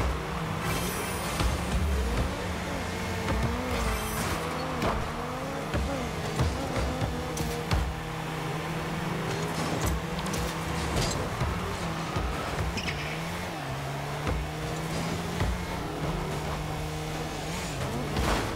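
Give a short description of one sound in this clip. A ball thuds against cars and walls.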